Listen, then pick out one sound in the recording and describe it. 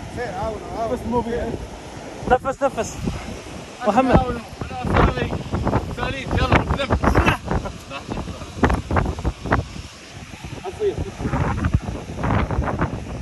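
Men talk loudly and with animation close by.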